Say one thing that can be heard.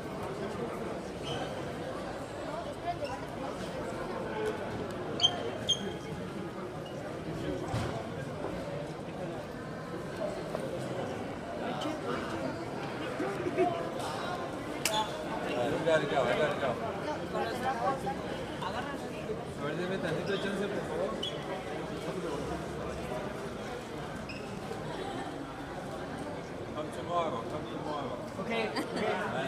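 A crowd of men and women chatters all around, close by, in a large echoing hall.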